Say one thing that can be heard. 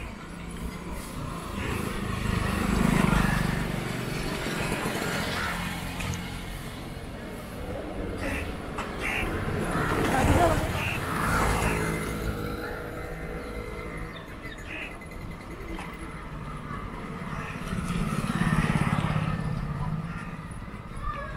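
Motorcycle engines approach and pass by close, one after another.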